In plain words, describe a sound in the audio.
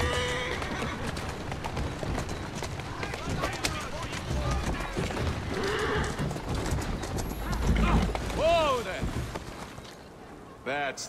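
Carriage wheels rumble and rattle over a road.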